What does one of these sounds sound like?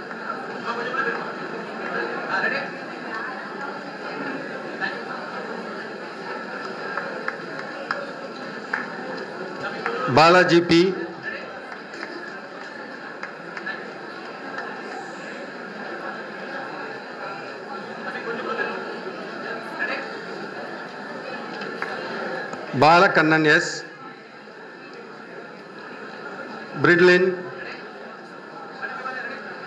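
A crowd of people murmurs and chatters in a large room.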